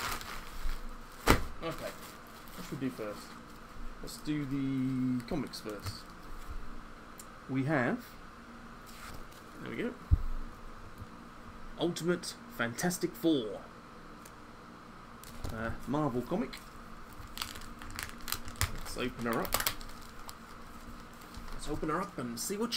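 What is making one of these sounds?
Paper and plastic sleeves rustle as they are handled.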